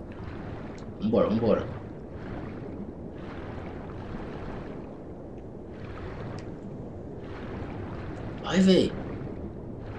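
A man speaks briefly and with animation into a microphone.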